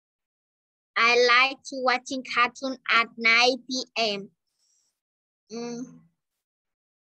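A woman speaks clearly through an online call.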